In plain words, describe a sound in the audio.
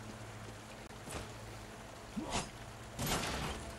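Game effects whoosh and thud in short bursts.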